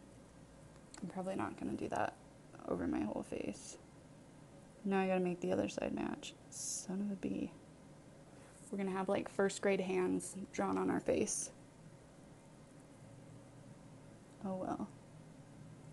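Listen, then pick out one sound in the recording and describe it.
A young woman talks calmly and softly, close to a microphone.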